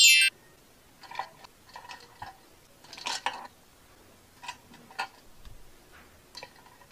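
Hands squeeze and knead soft clay with quiet squishing.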